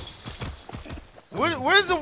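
A horse whinnies.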